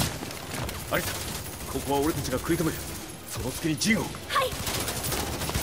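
A young man speaks urgently.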